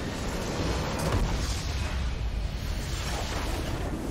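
A loud explosion booms as a structure is destroyed.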